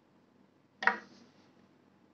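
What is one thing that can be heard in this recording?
A hand knocks against a ukulele's wooden body.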